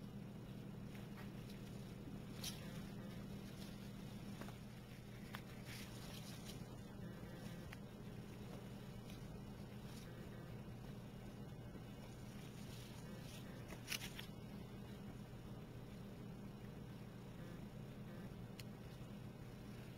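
Hands softly rustle and handle flower petals close by.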